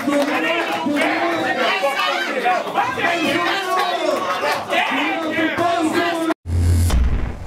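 A man raps loudly and with energy into a microphone.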